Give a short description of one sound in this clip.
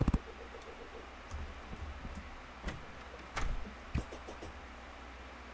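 Short video game sound effects click and thump.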